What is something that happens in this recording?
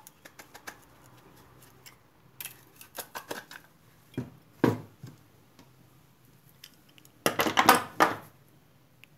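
Pliers scrape and clank against metal.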